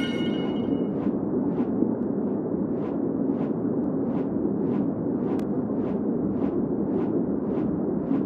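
Large wings beat in steady, regular whooshes.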